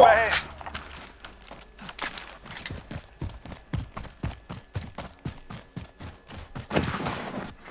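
Quick footsteps crunch on dirt and gravel.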